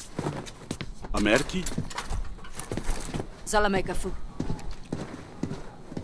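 Footsteps thud on a hard floor.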